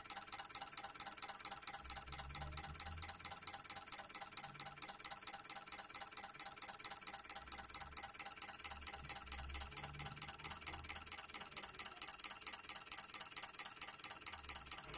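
Relays click rapidly in a steady, even rhythm.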